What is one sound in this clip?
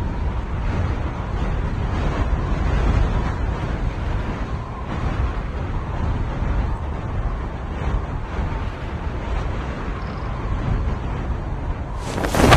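Wind rushes loudly past during a skydive.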